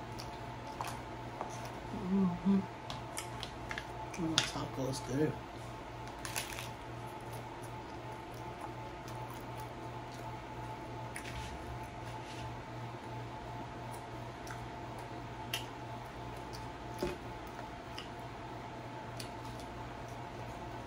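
Crunchy food crackles and crunches as a woman bites and chews.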